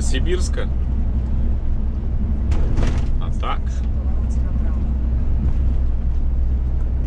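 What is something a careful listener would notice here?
Tyres rumble over the road.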